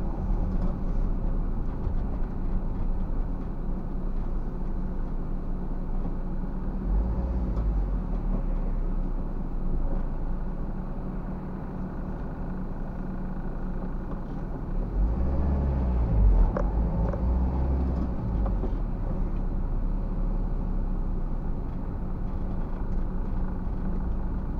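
A car engine hums steadily from inside the vehicle as it drives.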